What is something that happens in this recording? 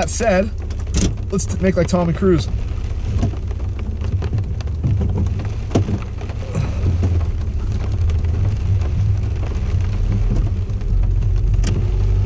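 Rain patters on a car windshield.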